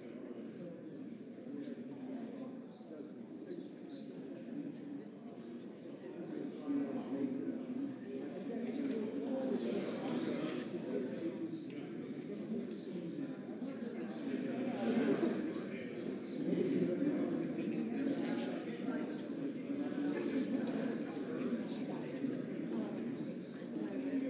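Many men and women chat in low voices in a large echoing hall.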